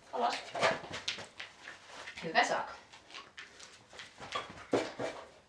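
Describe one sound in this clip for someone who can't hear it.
A dog's paws patter and scuff on the floor.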